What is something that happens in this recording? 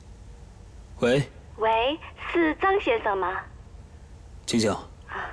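A young man speaks calmly into a telephone, close by.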